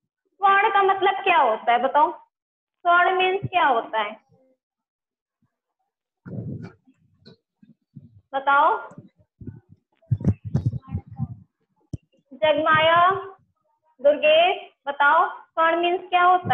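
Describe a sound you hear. A young woman speaks clearly and calmly into a close microphone, as if teaching.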